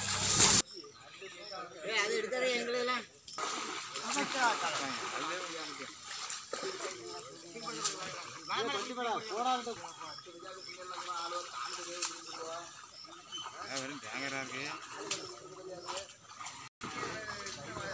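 Water splashes as men wade and haul a net.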